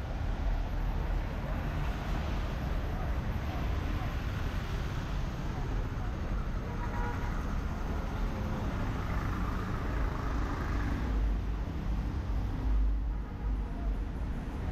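Car tyres hiss on a wet road.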